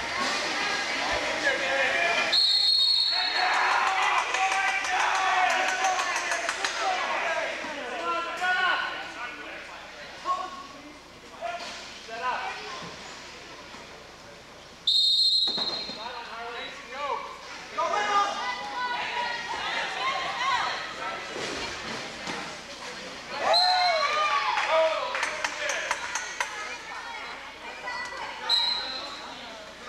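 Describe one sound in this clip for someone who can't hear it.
Many people talk and shout across a large echoing gym.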